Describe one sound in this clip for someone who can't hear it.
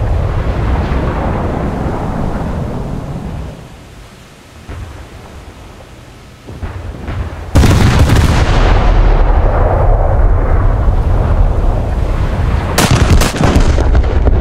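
Waves wash steadily over open sea.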